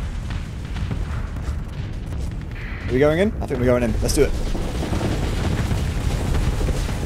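Laser weapons fire in quick bursts.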